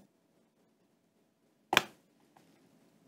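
A phone is set down on a mat with a soft knock.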